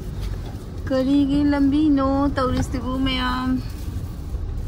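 A vehicle horn honks loudly in traffic.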